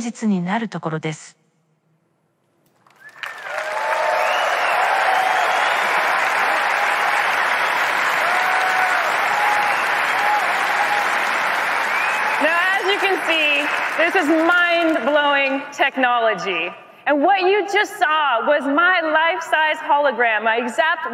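A woman speaks with animation through a microphone in a large hall.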